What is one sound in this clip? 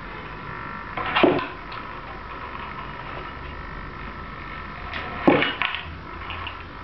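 A small motor whirs and clunks as a tilting panel moves.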